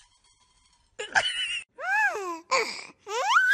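Cats meow in high, rising and falling cries.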